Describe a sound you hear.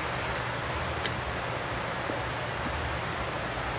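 A person climbs a metal ladder with light clanks.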